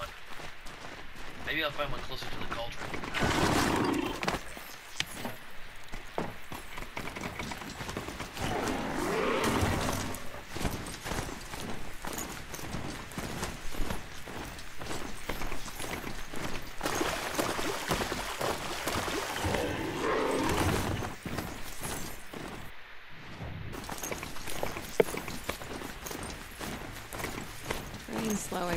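Metal hooves clatter steadily as a mechanical mount gallops over rough ground.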